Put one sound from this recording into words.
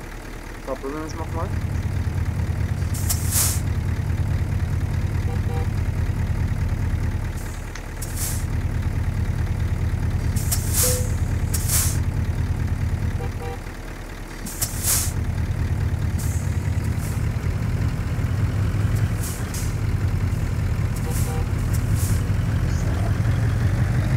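A heavy truck engine rumbles steadily, with brief dips.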